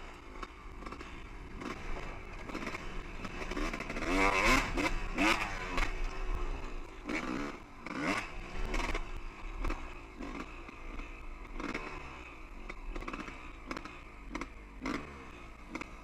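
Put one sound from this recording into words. Tyres crunch over rocky dirt.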